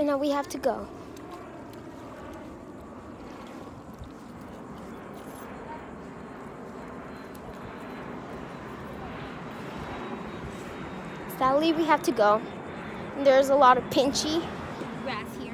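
A young girl talks loudly close by.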